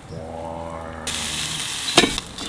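Steak sizzles loudly on a hot grill.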